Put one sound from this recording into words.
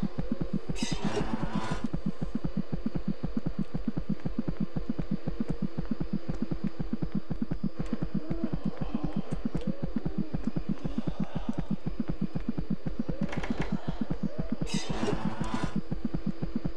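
A monitor's static hisses in short bursts.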